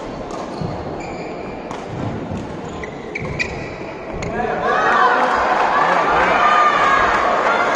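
Sports shoes squeak on a court mat.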